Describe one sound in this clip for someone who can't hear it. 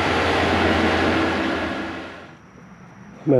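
A compact loader's diesel engine rumbles steadily and then fades away.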